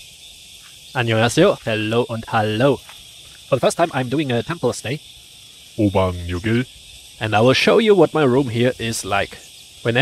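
A young man talks calmly and close by.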